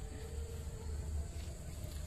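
Footsteps crunch on grass and dry leaves.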